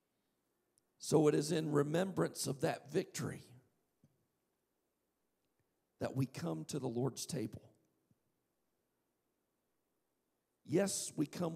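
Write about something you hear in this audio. A man speaks calmly through a microphone in a large hall, with pauses between phrases.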